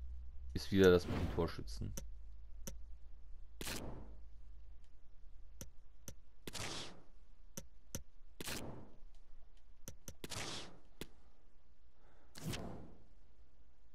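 Soft whooshes sweep as menus open and close.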